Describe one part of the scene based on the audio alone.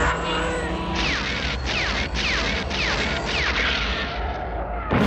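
Laser cannons fire a rapid series of sharp, falling zaps.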